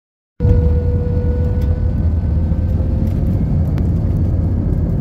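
Airplane wheels rumble along a runway.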